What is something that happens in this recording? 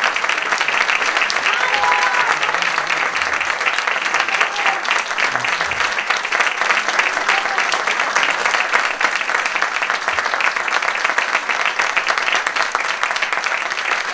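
An audience applauds loudly throughout.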